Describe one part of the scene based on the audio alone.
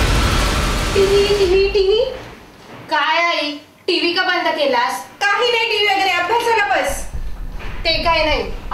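A middle-aged woman speaks with animation, close by.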